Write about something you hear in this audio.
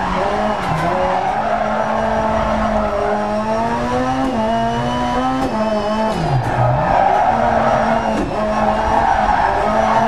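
A rally car engine roars and revs up and down, shifting gears.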